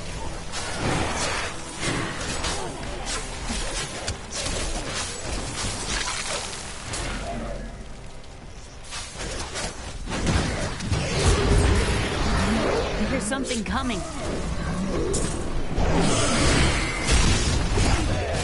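Game combat effects clash, thud and crackle.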